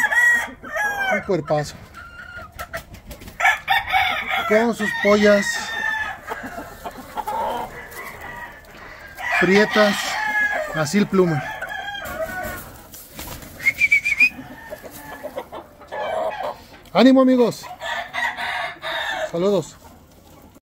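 Roosters crow loudly close by.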